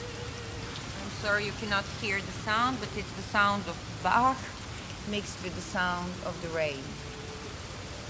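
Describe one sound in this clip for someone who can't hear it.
A woman vocalizes in high, sliding tones through a microphone in a large hall.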